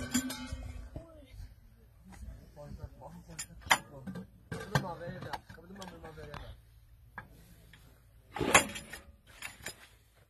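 Metal clanks as a man works on a heavy gun.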